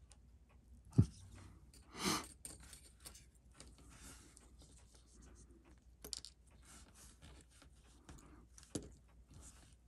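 Metal tweezers tick and click faintly against a small watch movement.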